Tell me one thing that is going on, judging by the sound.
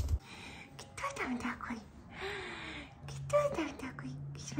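A young woman talks playfully and warmly up close.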